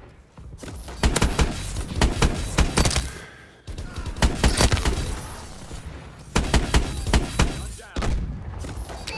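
Rapid gunfire rattles in close bursts.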